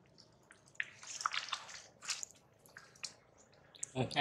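A plastic bottle crinkles and crackles as a monkey drinks from it.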